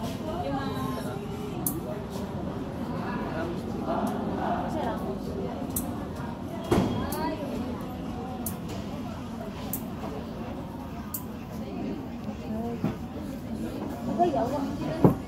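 Several young girls chatter casually close by.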